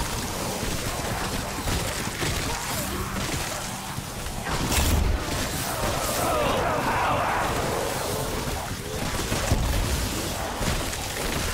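Electric bolts crackle and buzz loudly.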